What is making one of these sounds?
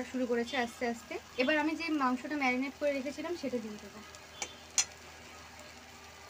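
A metal spatula scrapes and stirs a thick paste in a metal pan.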